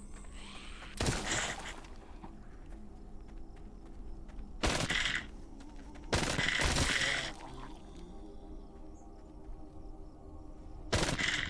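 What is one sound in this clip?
Gunshots ring out in sharp bursts.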